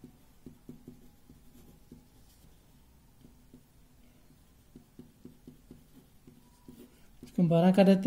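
A pen scratches and taps on paper.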